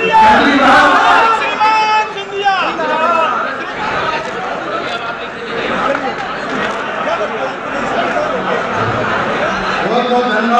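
A crowd of men talks and calls out loudly and close by, in an echoing room.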